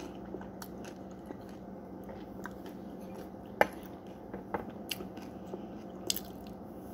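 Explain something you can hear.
A woman eats with soft, crunchy chewing close by.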